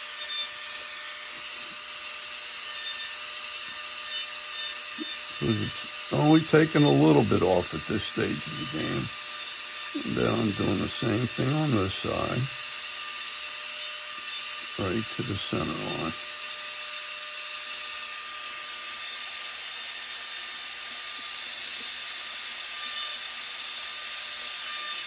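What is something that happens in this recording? A small rotary tool whirs steadily as it grinds wood.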